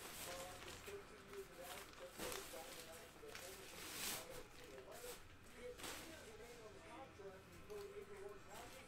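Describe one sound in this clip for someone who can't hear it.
A plastic bag rustles as it is handled.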